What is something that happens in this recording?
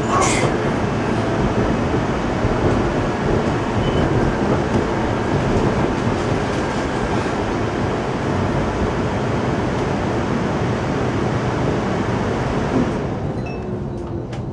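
A train rumbles loudly along the track, then quiets.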